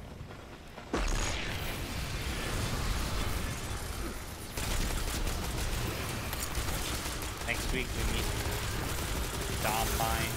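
Guns fire rapidly in a video game.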